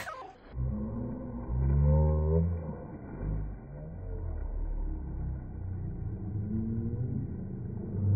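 Water splashes as a baby slides into a pool.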